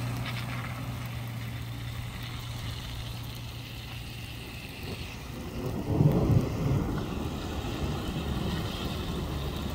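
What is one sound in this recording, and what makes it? A pickup truck drives along a wet road.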